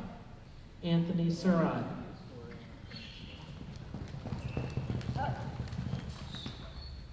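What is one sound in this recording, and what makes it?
A horse gallops, its hooves thudding on soft dirt.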